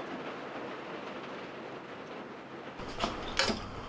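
A liquid pours into a pot.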